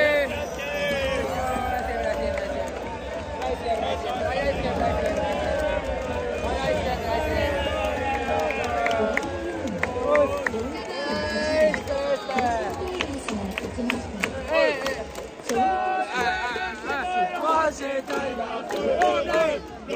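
A large stadium crowd sings and cheers together.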